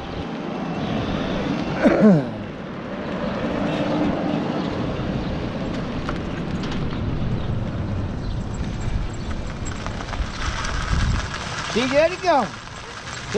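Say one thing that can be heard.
A golf cart hums and rolls steadily along a paved road.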